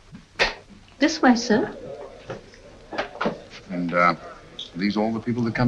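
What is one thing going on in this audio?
A middle-aged woman speaks firmly.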